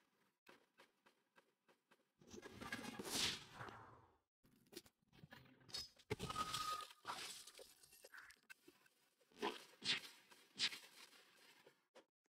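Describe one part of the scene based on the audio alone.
Game punches land with sharp thumps.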